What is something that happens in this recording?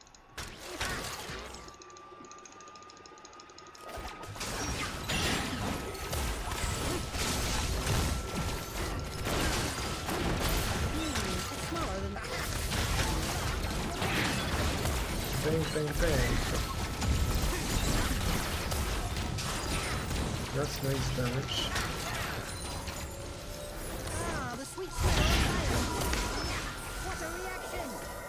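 Game sound effects clash and whoosh during a fight.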